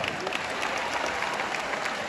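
A man claps his hands.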